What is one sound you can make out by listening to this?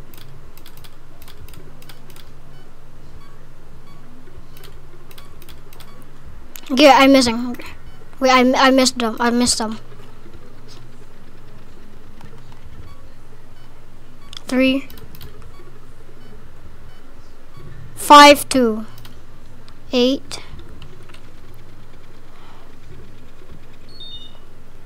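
Switches click one after another.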